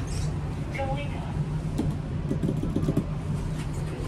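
A finger clicks an elevator button.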